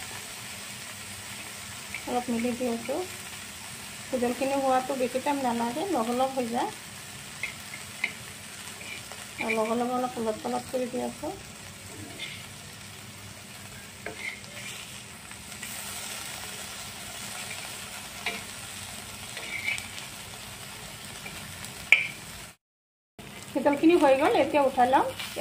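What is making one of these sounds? Fish sizzles in hot oil.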